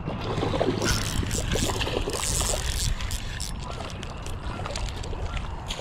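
A fishing reel whirs as its handle is cranked.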